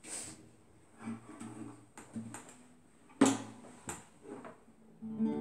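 An acoustic guitar is strummed and plucked.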